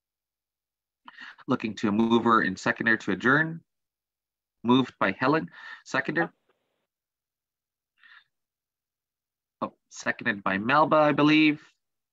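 A man speaks calmly in short phrases through an online call.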